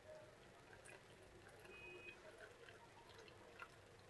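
Liquid trickles through a strainer into a bowl.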